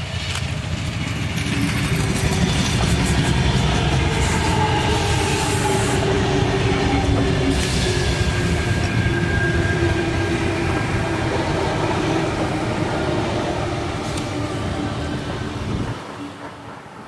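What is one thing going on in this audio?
An electric train rumbles past close by and then fades away.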